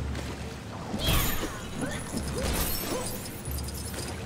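Small plastic pieces clatter and scatter as objects break apart.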